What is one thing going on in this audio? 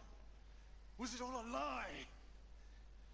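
A man asks a question in a low, tense voice.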